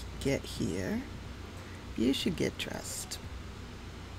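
A young woman talks casually into a headset microphone.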